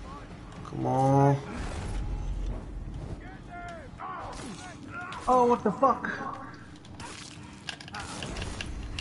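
Game characters grunt and shout.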